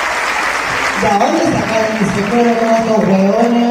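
A woman sings loudly into a microphone.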